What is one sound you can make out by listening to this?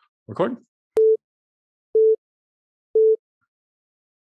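A computer gives three short, evenly spaced beeps.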